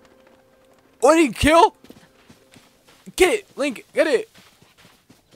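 A young man exclaims loudly and excitedly close to a microphone.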